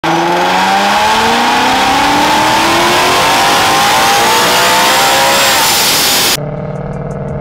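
An engine revs hard, climbing steadily in pitch.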